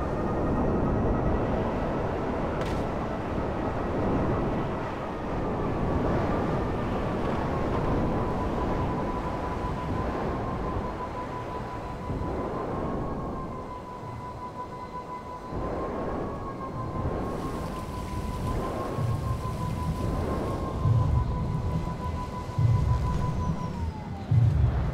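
A jet engine whines steadily and roars.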